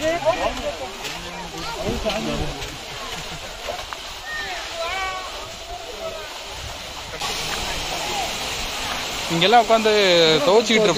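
People in a crowd talk and call out nearby.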